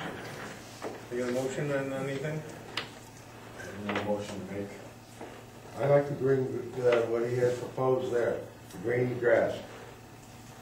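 A man speaks calmly in a room with a slight echo, heard from across the room.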